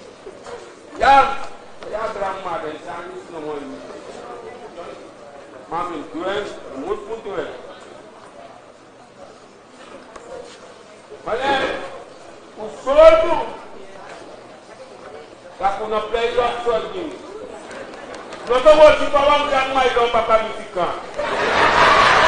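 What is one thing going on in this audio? A woman speaks loudly and with animation in a large hall.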